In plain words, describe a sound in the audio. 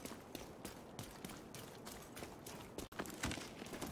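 Quick footsteps run on a wet street.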